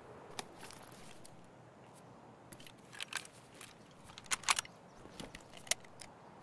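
Metal parts of a gun click and clatter as the gun is handled.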